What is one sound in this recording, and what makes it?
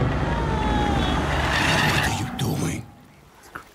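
A man asks something in a gruff voice.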